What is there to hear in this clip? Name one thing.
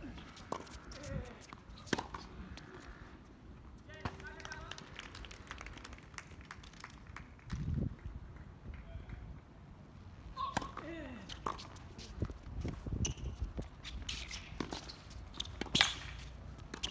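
A tennis ball is struck sharply by rackets, back and forth.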